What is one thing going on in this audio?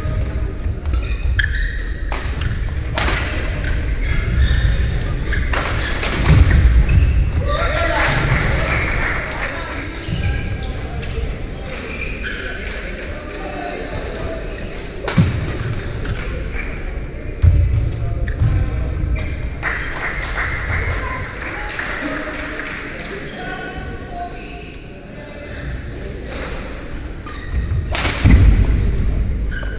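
Shoes squeak and thud on the court floor.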